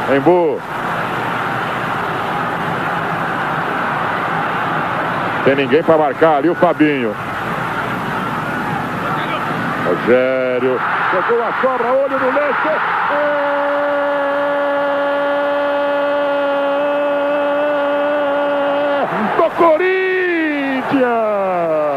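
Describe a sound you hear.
A large crowd roars and cheers in a big open stadium.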